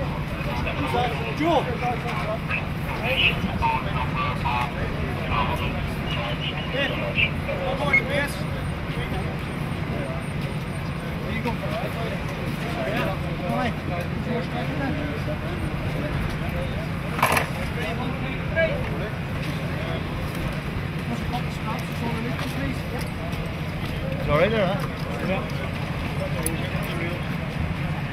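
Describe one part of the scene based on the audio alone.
Several men talk and call out to each other nearby, outdoors.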